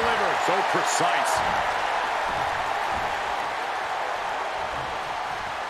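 A large arena crowd roars and cheers steadily.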